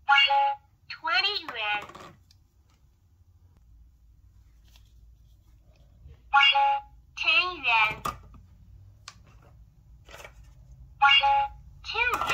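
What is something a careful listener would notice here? A toy scanner gives a short electronic beep.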